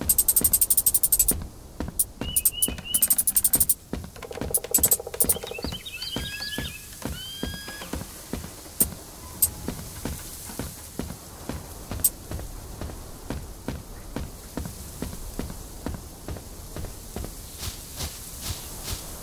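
Footsteps patter quickly and steadily.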